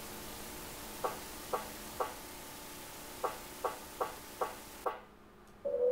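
A mechanical counter clicks over several times.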